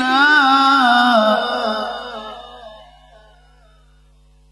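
An elderly man chants a long, wavering melodic line into a microphone, which echoes and fades away.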